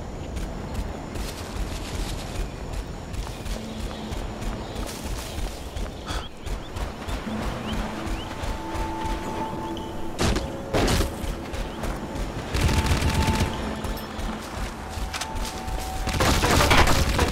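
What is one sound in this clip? Footsteps crunch steadily through grass and sand.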